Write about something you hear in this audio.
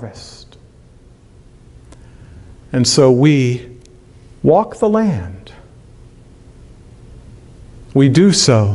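A middle-aged man speaks slowly and calmly into a microphone, with pauses between phrases.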